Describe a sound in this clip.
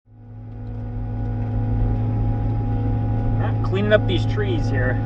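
A heavy machine's diesel engine rumbles steadily from inside the cab.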